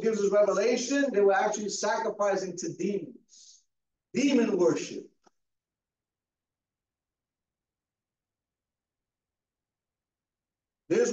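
A man preaches with animation through a microphone, pausing between phrases.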